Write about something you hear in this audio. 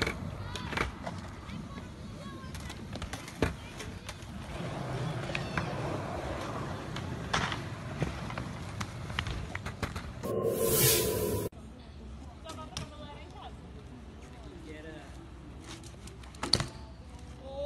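A bicycle lands with sharp thuds on concrete.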